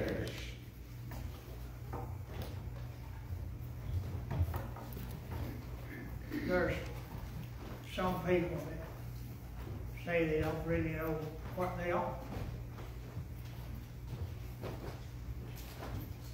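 An elderly man speaks calmly through a microphone in a small echoing room.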